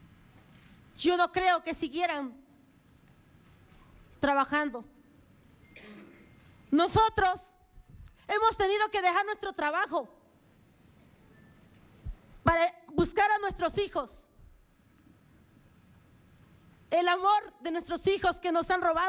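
A middle-aged woman speaks with emotion through a microphone, in short bursts with pauses.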